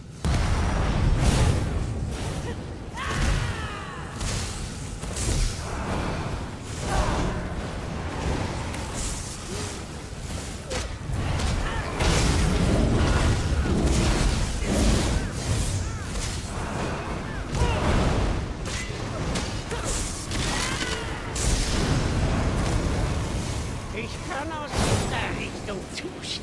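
Magic spells crackle and burst with electric zaps.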